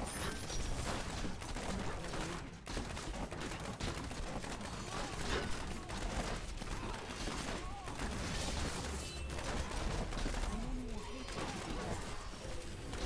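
Magic blasts and fiery explosions crackle and boom in a fierce fight.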